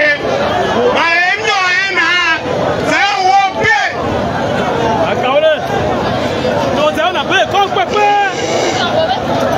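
A man sings loudly into a microphone, heard through loudspeakers.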